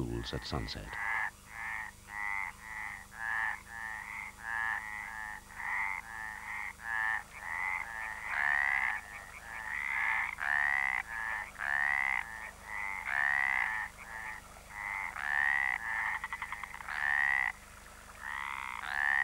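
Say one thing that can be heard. A tree frog calls with rapid rasping bursts.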